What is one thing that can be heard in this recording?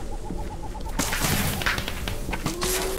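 A magical blast bursts with a loud crackling whoosh.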